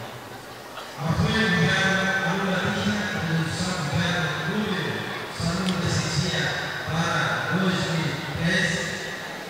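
A man speaks formally into a microphone through a loudspeaker in an echoing hall.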